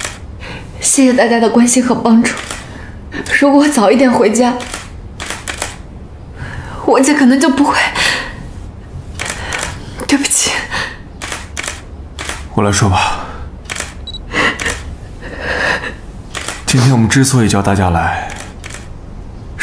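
A young woman speaks softly and tearfully, close by.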